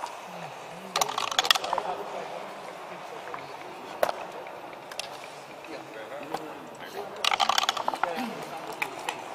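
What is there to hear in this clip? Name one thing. Dice rattle and tumble onto a board.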